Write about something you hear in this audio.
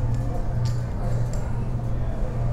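Poker chips click together on a table.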